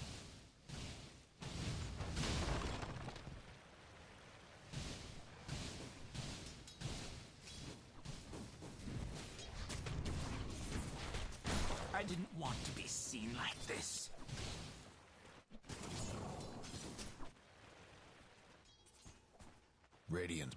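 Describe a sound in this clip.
Game combat sounds of spells and weapon hits burst and clash.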